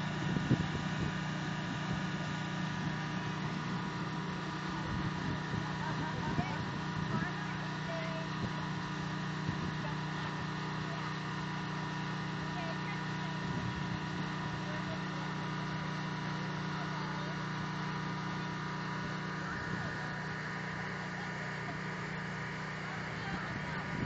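A steady low hum of a blower runs throughout.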